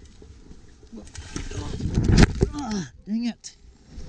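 A mountain bike crashes to the ground.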